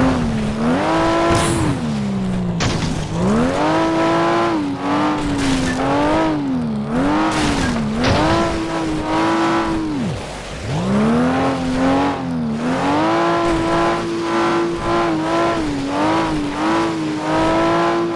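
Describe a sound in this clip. Tyres skid and crunch on snow and ice.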